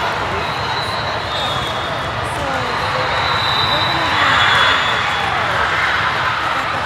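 A crowd of players and spectators chatters and cheers in a large echoing hall.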